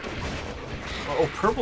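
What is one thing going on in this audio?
A young man speaks casually into a headset microphone.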